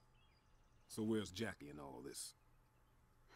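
A man speaks in a low, questioning voice, close by.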